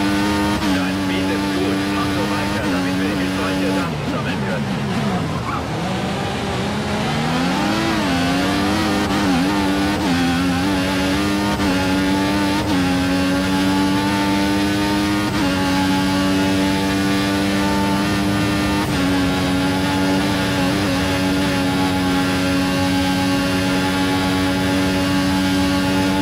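A racing car engine screams at high revs, drops in pitch while braking for a corner, then climbs again through the gears.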